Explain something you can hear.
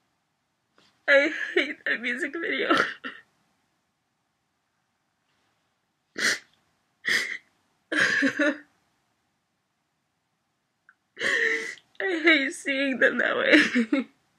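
A young woman speaks in a choked, tearful voice close by.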